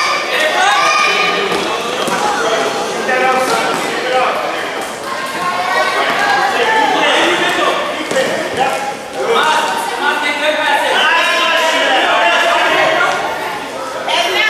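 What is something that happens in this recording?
Children and adults shout and cheer in a large echoing hall.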